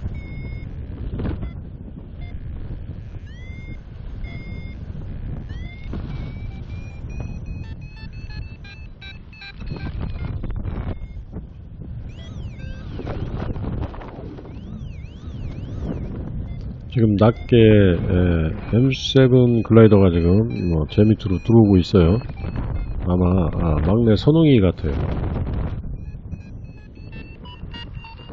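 Wind rushes and buffets steadily past a paraglider in flight.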